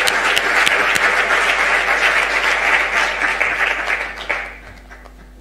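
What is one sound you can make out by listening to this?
An audience applauds in a room that echoes.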